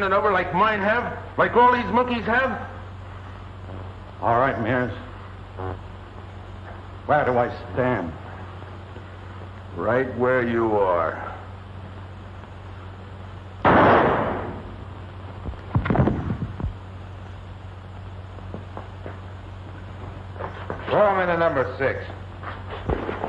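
A man speaks in a low, serious voice, in short phrases with pauses.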